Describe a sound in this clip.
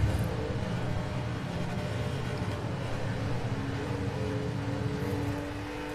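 A car engine hums steadily at high revs.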